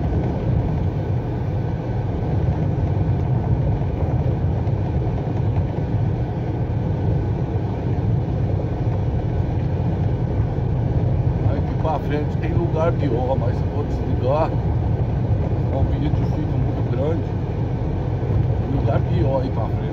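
A vehicle's engine rumbles steadily as it drives along.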